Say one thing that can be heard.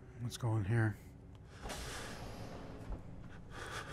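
A heavy sliding door rumbles open.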